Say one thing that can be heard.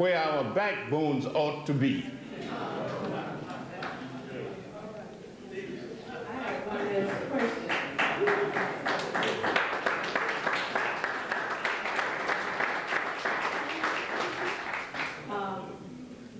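An elderly man speaks into a microphone in an echoing hall.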